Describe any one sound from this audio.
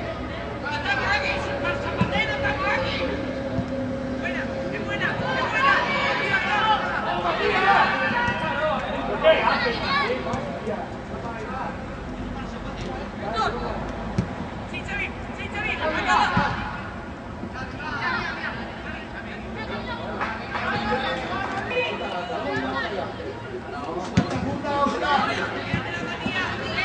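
Young players shout and call out across an open outdoor pitch.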